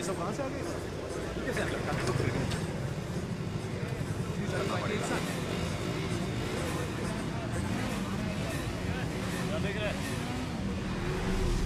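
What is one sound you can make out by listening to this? Motorcycle engines rumble in a large echoing hall.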